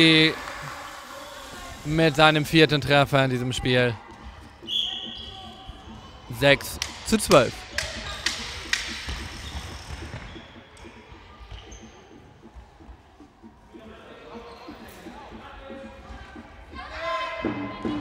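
Children shout across a large echoing hall.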